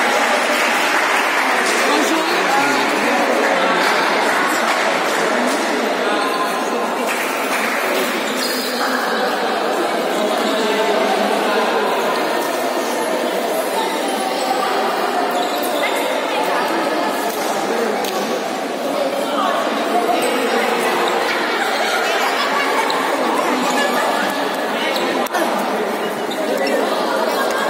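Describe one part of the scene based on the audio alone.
Many young girls chatter and call out in a large echoing hall.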